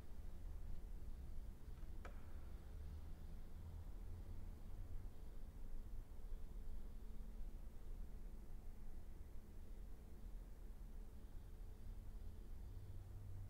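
A cello plays soft, slow, sustained notes.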